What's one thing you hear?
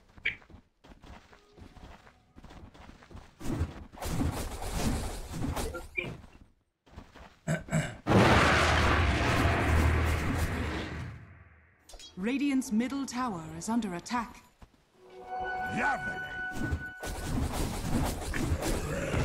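Game sound effects of a fight clash and blast.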